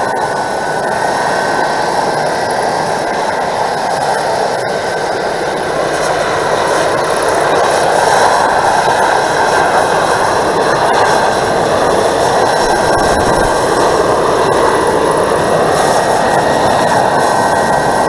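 A model aircraft's small motor whirs steadily and grows louder as it comes closer.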